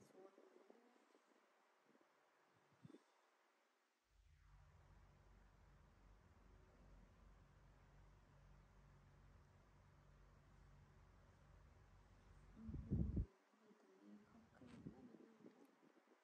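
A hand softly rubs a baby monkey's fur.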